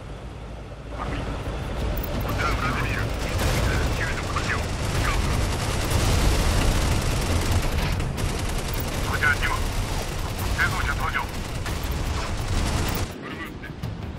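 Guns boom and explosions rumble in a loud battle.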